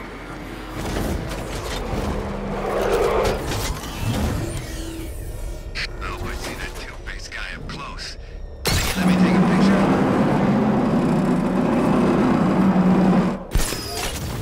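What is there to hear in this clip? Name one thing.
An armoured car's engine roars and revs as it speeds along.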